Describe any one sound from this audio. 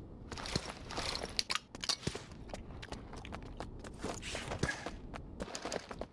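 Footsteps with gear rattling thud on a hard floor.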